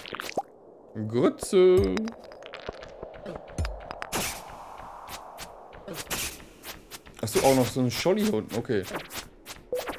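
A young man talks casually, close to a microphone.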